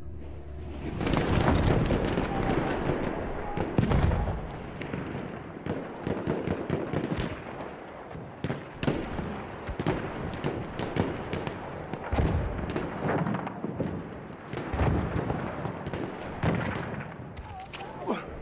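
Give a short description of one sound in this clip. Gunfire and explosions crackle and rumble in the distance.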